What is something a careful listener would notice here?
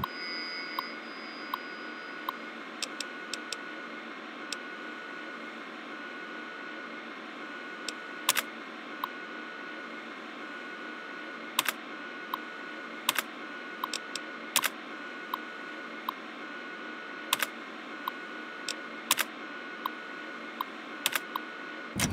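A computer terminal clicks sharply now and then.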